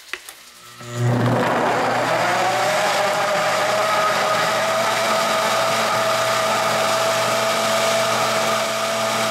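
A blender whirs loudly and steadily as it blends.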